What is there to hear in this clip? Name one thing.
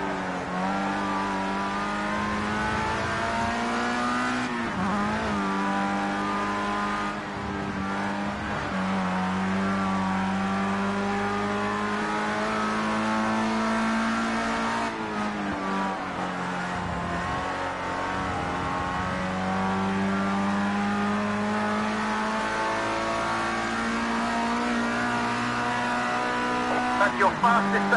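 A race car engine roars loudly, its pitch rising through the gears and dropping as it shifts down.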